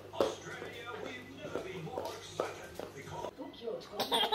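A little girl babbles close by.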